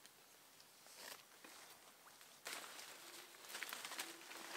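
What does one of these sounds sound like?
Leaves and branches rustle as a person pushes through undergrowth.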